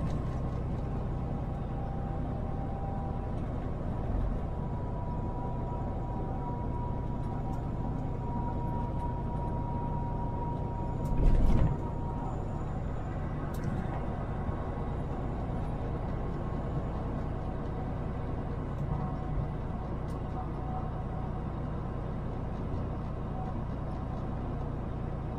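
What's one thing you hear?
A car engine hums and tyres roll steadily on the road from inside the car.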